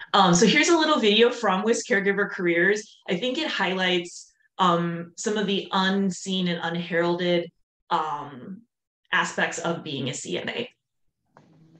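A woman talks with animation, heard through an online call.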